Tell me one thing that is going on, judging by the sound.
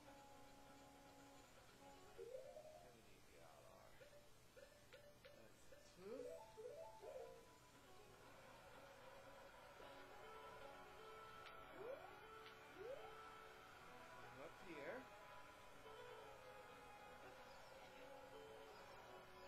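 Electronic video game music and sound effects play from a television speaker.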